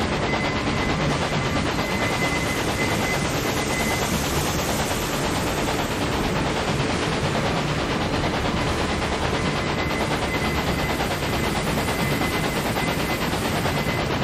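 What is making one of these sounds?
A steam locomotive chugs and rumbles steadily along the track.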